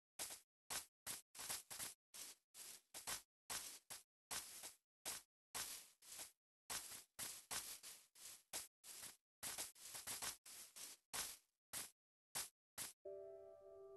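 Footsteps tread steadily on grass.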